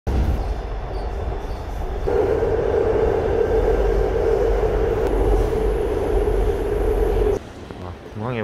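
A subway train rumbles and hums loudly while moving.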